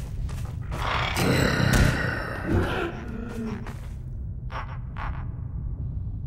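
A creature screeches and snarls while feeding.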